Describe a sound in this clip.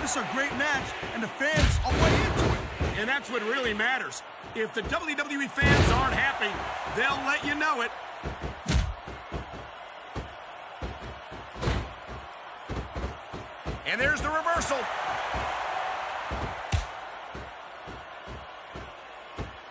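Heavy blows and body slams thud on a wrestling mat.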